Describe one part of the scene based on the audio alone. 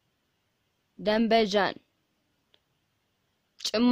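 A woman speaks single words clearly and calmly, close to a microphone.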